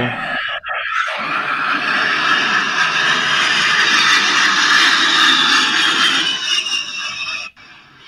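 A young man laughs loudly and hard into a microphone.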